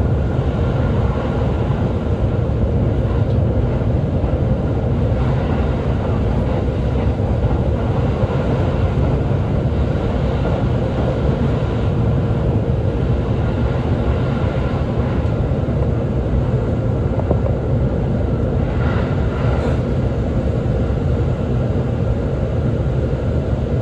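A train rumbles steadily along the tracks, heard from inside.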